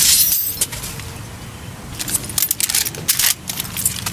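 A gun's metal parts clink as it is handled.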